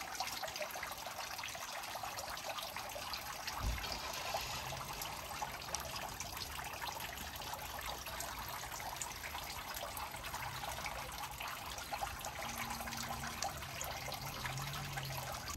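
Water trickles and splashes steadily from spouts into a stone basin.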